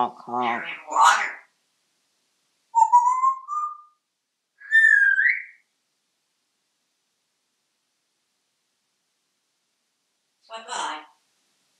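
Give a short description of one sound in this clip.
A parrot squawks and chatters nearby.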